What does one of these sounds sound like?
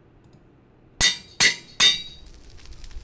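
An anvil clangs sharply a few times.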